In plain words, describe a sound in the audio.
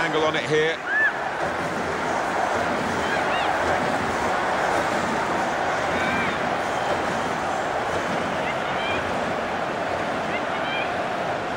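Whistles sound from a crowd.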